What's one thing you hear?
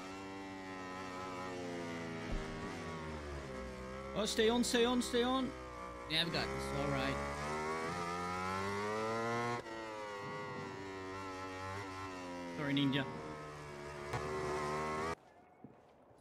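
A racing motorcycle engine screams at high revs, rising and falling through the gears.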